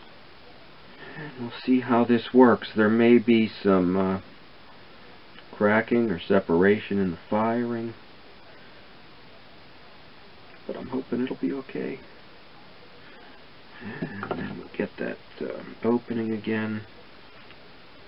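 A middle-aged man talks calmly, close by, in short bursts.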